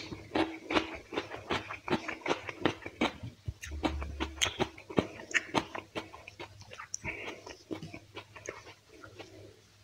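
Fingers squish and mix rice in a wet sauce.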